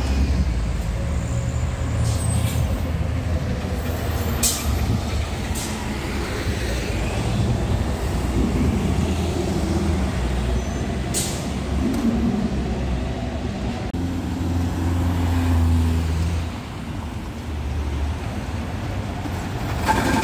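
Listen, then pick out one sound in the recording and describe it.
A bus engine rumbles loudly as a bus drives past close by.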